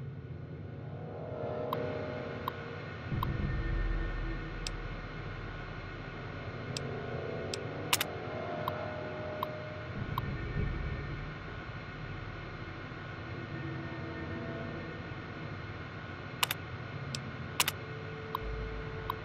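A computer terminal hums steadily.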